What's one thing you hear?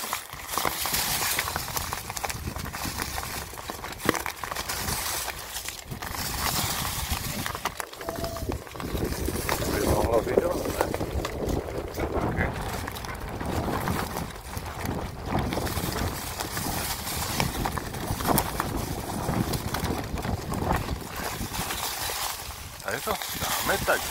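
Mountain bike tyres roll and crunch over dry fallen leaves.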